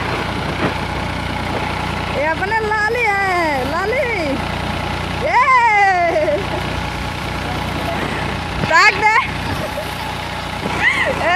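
A diesel tractor engine runs under load.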